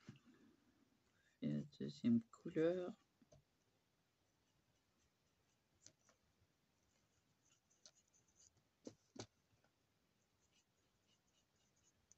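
A marker tip squeaks and scratches softly on paper.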